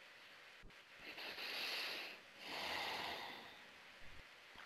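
A woman breathes slowly and deeply into a headset microphone.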